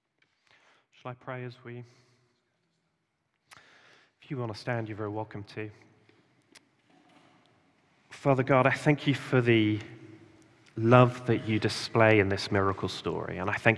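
A young man speaks calmly into a microphone in an echoing hall, with long pauses.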